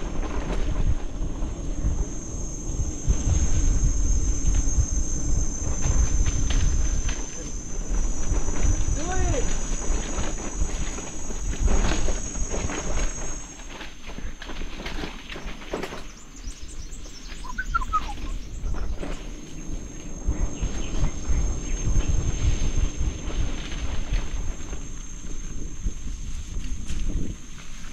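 A mountain bike rattles and clatters over bumps.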